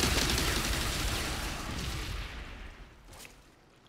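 An explosion booms and slowly fades.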